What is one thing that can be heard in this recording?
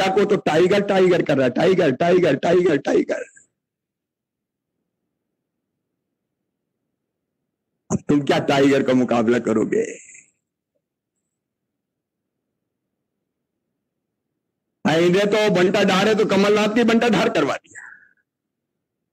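A middle-aged man speaks with animation through a microphone and loudspeakers.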